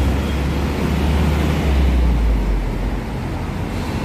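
A bus engine roars close by as the bus passes.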